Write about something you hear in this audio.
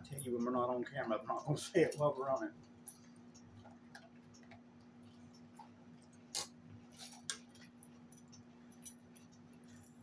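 A knife and fork scrape and clink on a plate.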